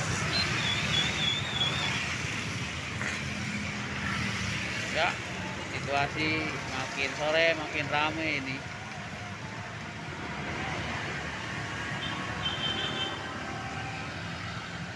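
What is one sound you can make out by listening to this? Motorbike engines hum and buzz as they pass close by.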